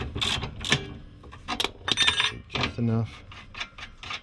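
A metal tool clanks down onto concrete.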